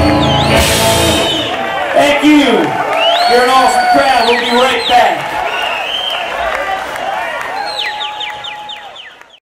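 A rock band plays loudly through speakers in a large echoing hall.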